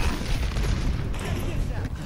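An energy blast crackles and whooshes.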